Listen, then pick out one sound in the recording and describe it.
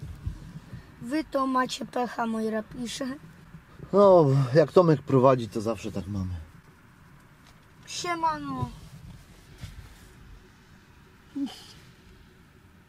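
A van engine hums low inside the cab.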